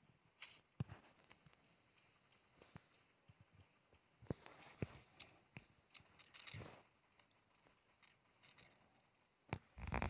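Footsteps patter on a hard surface.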